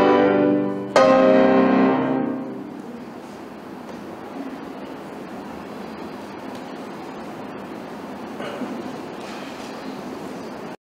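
A grand piano plays loud chords that ring out and slowly fade in an echoing hall.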